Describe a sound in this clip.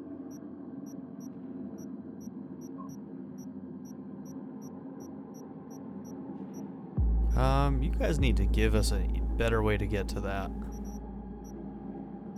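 Soft electronic ticks sound in a quick, even series.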